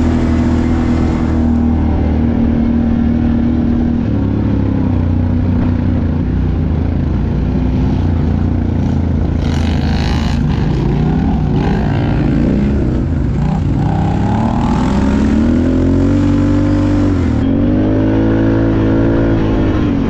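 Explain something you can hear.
Quad bike engines drone and rev up and down close by.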